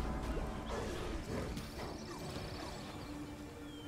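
Game creatures shriek and die as blows land.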